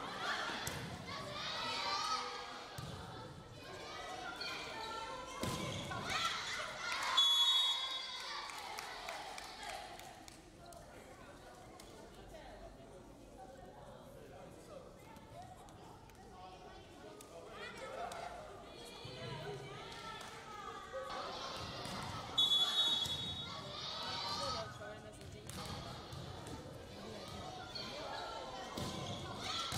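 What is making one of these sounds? Volleyball players shout and cheer in a large echoing hall.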